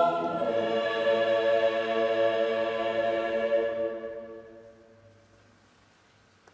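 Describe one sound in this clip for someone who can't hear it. A choir sings a sustained final chord that rings out and fades in a large echoing hall.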